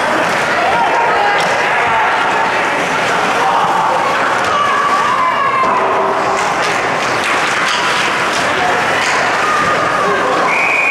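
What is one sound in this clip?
Skates scrape and hiss across the ice.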